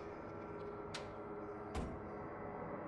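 A soft click sounds twice.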